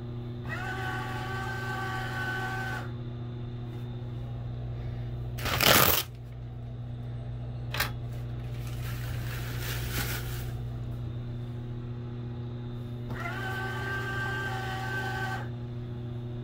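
A paper towel dispenser's motor whirs briefly as it feeds out paper.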